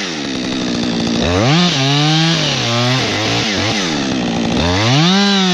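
A chainsaw engine revs loudly up and down, close by.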